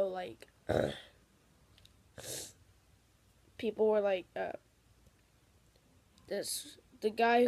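A boy talks close to a phone's microphone in short bursts.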